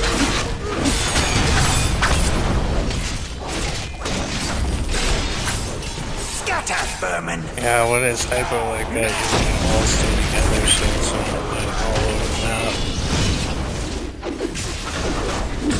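Magic blasts crackle and burst in a busy fight.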